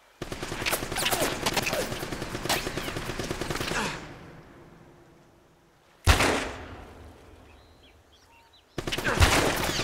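Gunfire crackles in rapid bursts, with loud single shots echoing.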